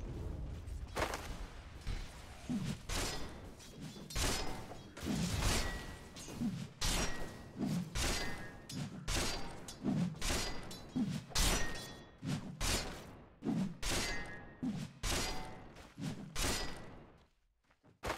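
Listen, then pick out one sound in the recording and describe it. Heavy blows land again and again with sharp, ringing impacts.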